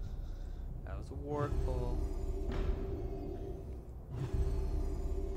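A magical spell shimmers with a rising chime.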